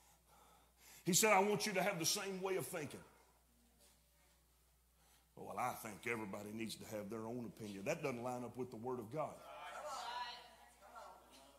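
A middle-aged man preaches with emphasis through a microphone in a large room, pausing between phrases.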